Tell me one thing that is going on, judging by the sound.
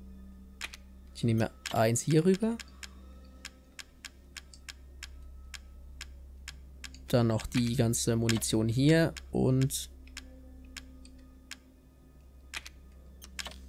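Short electronic menu clicks tick rapidly as a list scrolls.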